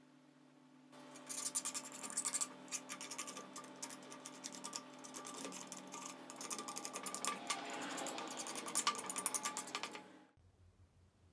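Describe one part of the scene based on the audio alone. A blade scrapes and scratches paint off a small metal toy.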